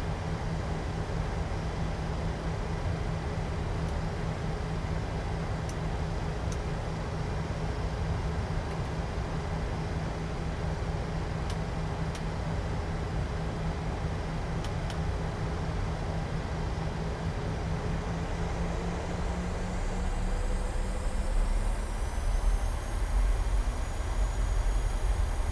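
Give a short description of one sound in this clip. Jet engines hum steadily with a low rumble.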